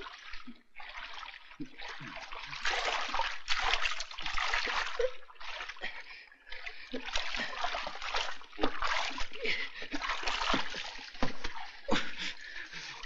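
Water splashes and churns as a man swims.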